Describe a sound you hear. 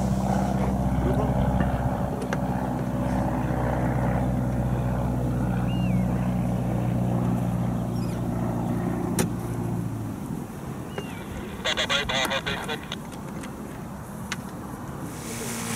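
Men talk calmly nearby outdoors.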